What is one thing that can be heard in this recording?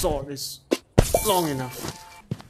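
A sharp impact sounds as something is struck.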